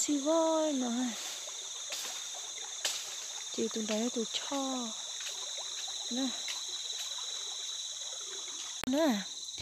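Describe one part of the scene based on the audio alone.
A shallow stream trickles over stones nearby.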